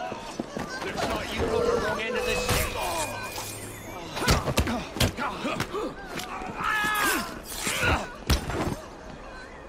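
Punches land with heavy thuds during a scuffle.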